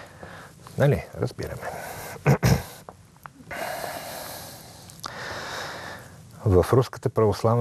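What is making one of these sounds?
A middle-aged man speaks with emphasis into a microphone, pausing between phrases.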